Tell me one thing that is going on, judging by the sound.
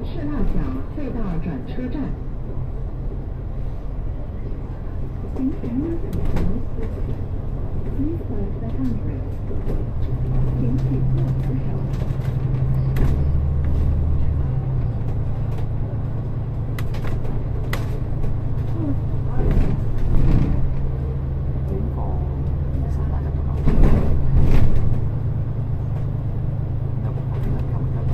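A bus engine hums steadily from inside.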